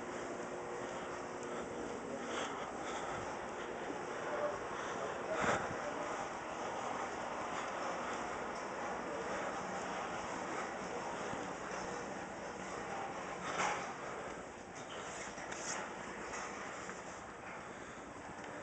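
Footsteps shuffle softly on a hard floor.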